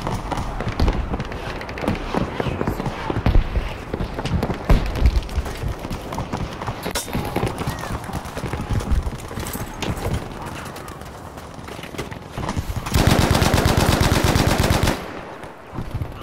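Rifle shots crack and boom repeatedly.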